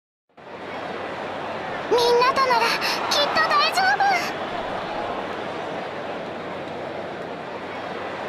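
A large crowd cheers steadily.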